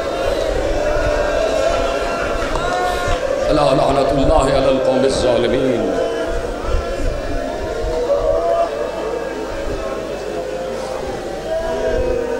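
A crowd of men chant together.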